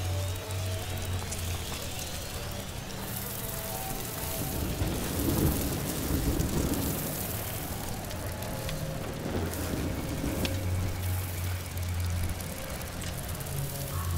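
Footsteps crunch slowly on dirt and gravel.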